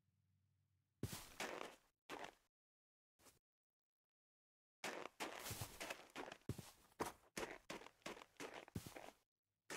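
Blocks of snow and earth crunch as they are dug out, one after another.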